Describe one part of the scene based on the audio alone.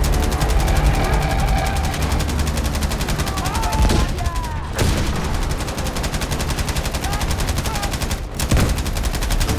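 A heavy machine gun fires in long, rapid bursts close by.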